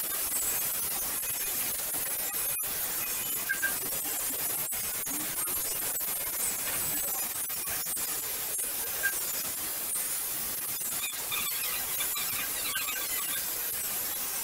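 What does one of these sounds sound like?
A toothbrush scrubs teeth.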